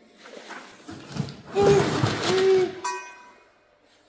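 Cardboard rustles as a box is rummaged through.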